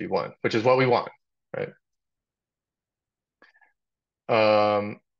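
A man speaks calmly through a webcam microphone, in short phrases.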